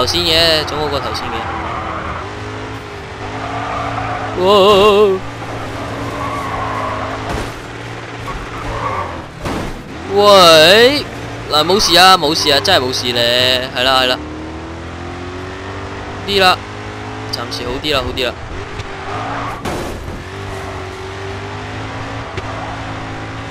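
Tyres screech loudly as a car drifts around bends.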